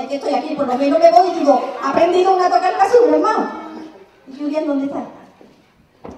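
A woman speaks with animation in a large echoing hall.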